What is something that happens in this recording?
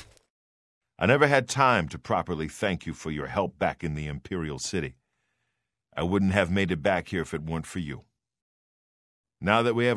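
A man speaks calmly and warmly, close up.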